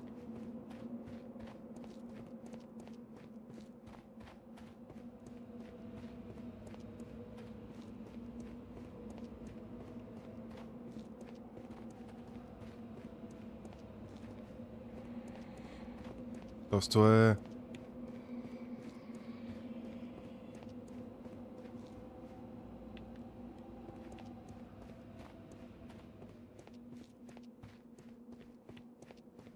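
Footsteps run quickly on a stone floor with a faint echo.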